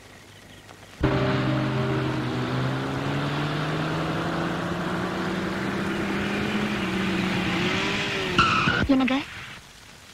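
A car engine hums as a car drives up and stops.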